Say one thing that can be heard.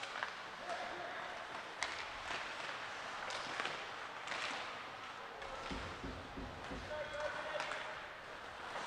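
Skates scrape and carve across the ice in a large echoing rink.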